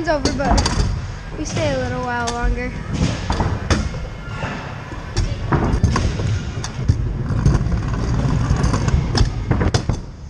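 A scooter clatters and knocks on landings.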